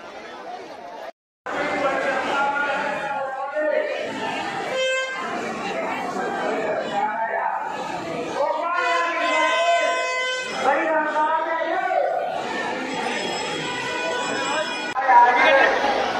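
A crowd chatters in a large echoing hall.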